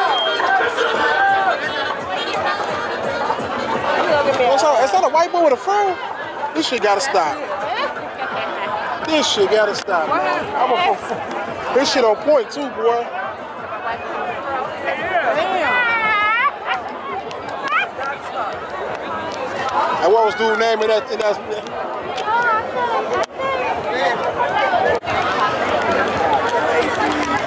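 A crowd of people chatter and call out all around, outdoors.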